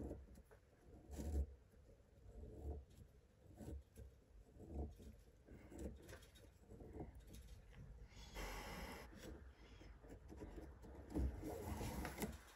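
Cord rustles and rubs softly as hands pull it through a knot.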